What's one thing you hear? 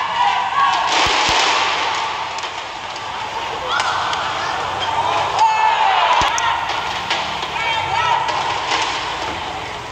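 Spectators murmur in a large echoing hall.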